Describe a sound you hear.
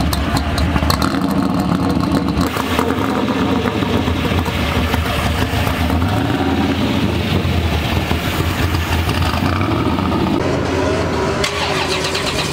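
A car engine idles with a deep, loping rumble close by.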